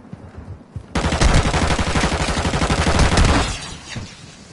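A smoke grenade bursts with a loud, rushing hiss.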